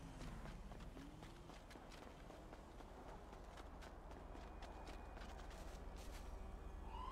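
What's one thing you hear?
Quick footsteps patter on pavement as a person runs.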